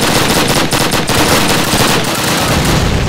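A submachine gun fires rapid bursts of shots close by.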